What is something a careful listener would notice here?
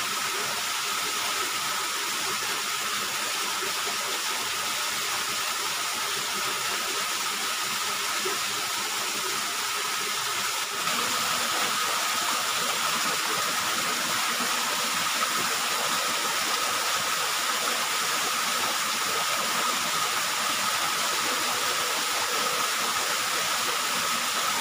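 A small waterfall splashes steadily into a stream.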